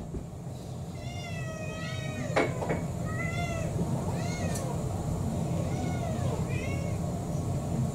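Several cats meow repeatedly nearby.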